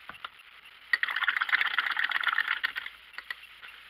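A brush rattles and swishes in a jar of water.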